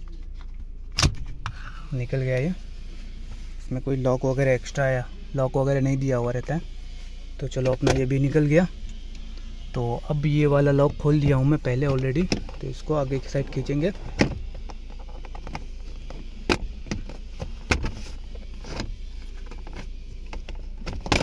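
Plastic parts click and knock as they are handled.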